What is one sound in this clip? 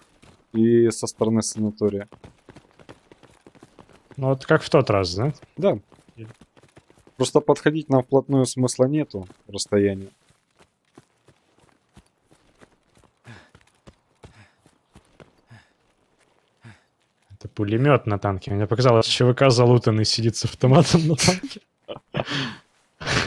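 A man talks with animation into a close microphone, pausing now and then.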